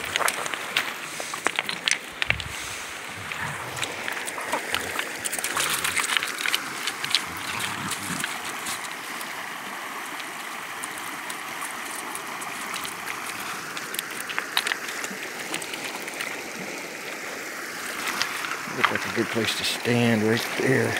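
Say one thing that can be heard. A shallow stream babbles steadily over stones.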